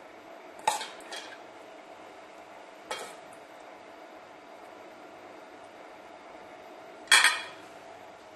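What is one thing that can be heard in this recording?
A metal spoon clinks against a steel bowl.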